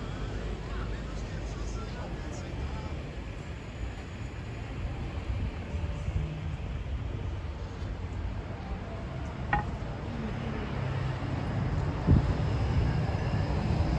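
Distant city traffic rumbles steadily outdoors.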